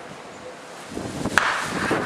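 A starting pistol fires once with a sharp crack.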